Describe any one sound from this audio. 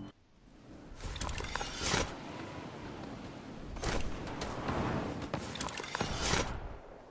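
Wind rushes loudly past a figure gliding through the air.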